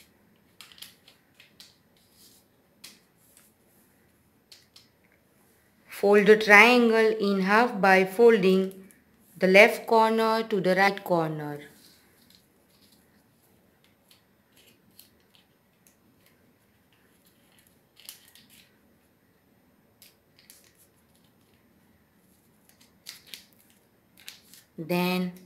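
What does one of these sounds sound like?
Paper rustles and crinkles as it is folded and creased.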